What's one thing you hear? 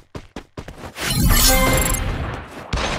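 A lightning bolt strikes with a loud crack.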